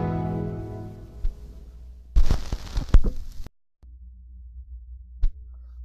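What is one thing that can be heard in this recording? A turntable rumbles softly as a record spins.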